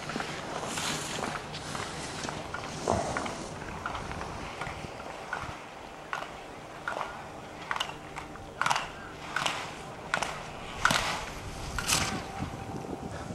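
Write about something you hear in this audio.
Skis scrape and hiss over hard snow in sharp bursts as a skier carves through turns.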